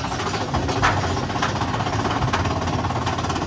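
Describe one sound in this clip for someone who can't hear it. Wheels clack on the rails.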